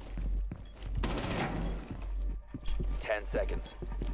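Rapid gunshots crack loudly.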